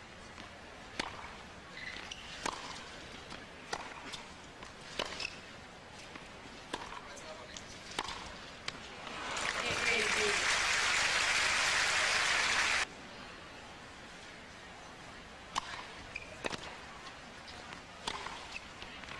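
Tennis balls are struck sharply back and forth with racquets.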